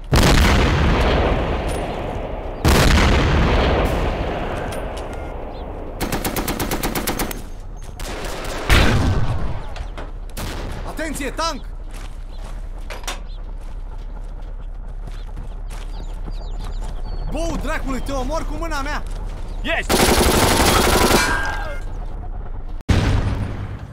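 Rifle shots ring out loudly, one after another.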